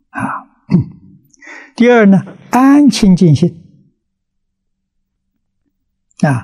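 An elderly man speaks calmly and slowly into a nearby microphone.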